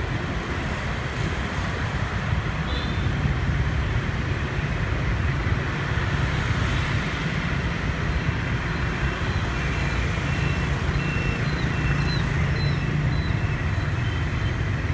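Motor scooters hum through city traffic.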